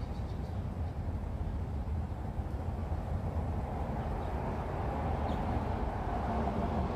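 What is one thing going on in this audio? Wind rustles through the leaves of nearby trees.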